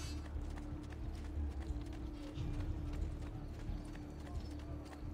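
Quick footsteps run over stone pavement.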